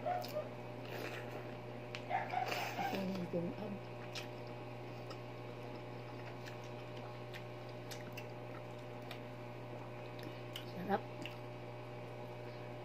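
A young woman chews food noisily close to the microphone.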